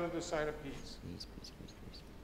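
A congregation finishes singing in a large echoing hall.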